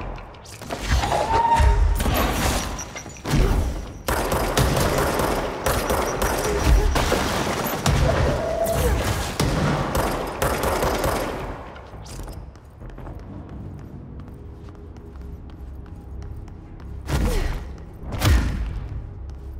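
Concrete debris crashes and scatters.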